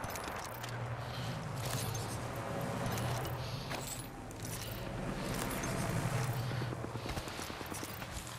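Footsteps crunch on gravel and sand.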